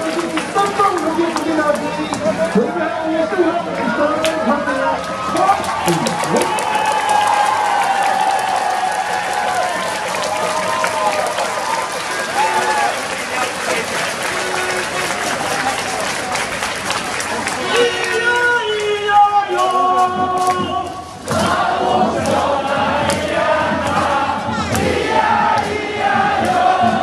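Noisemakers clap and rattle among the crowd.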